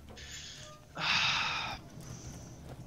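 A heavy metal door slides open with a hiss.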